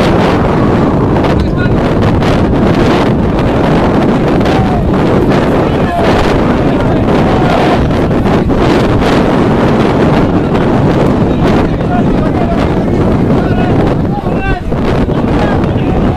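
Players shout to each other across the field.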